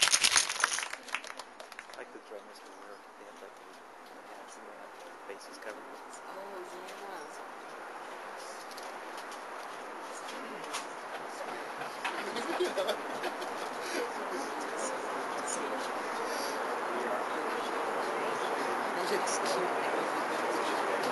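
A crowd murmurs and chatters, slowly growing louder.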